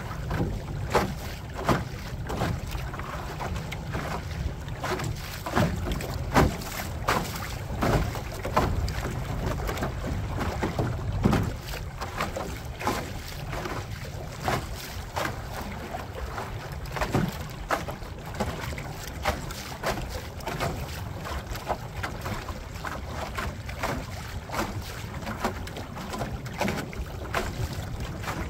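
Wind rumbles across the water outdoors.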